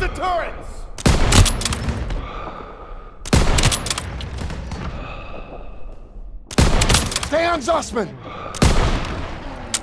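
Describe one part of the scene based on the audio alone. A rifle fires loud, echoing shots several times.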